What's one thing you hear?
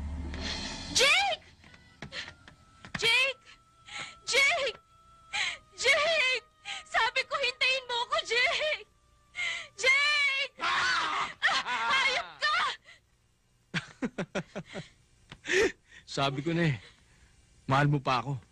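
A young woman moans and sighs close by.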